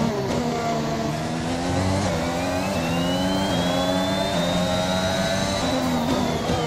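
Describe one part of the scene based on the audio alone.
A racing car engine screams at high revs, rising in pitch through each gear and dropping sharply at each gear change.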